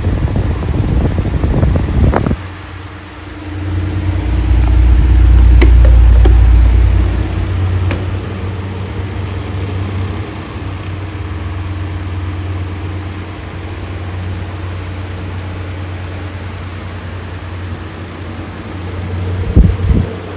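An electric fan whirs and hums steadily.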